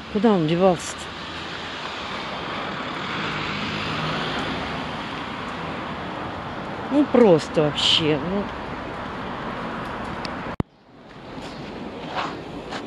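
Distant street traffic hums steadily outdoors.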